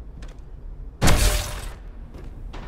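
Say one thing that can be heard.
A heavy metallic blow lands with a loud whoosh.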